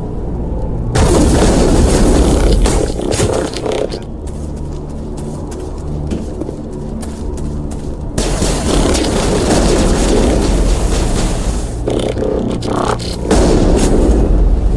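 Guns fire in rapid bursts close by.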